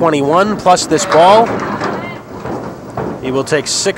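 Bowling pins clatter as a ball crashes into them.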